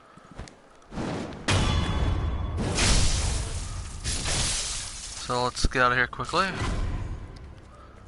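Swords clash and ring sharply.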